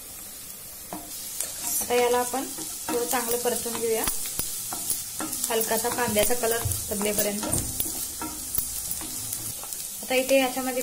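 Food sizzles in hot oil in a pan.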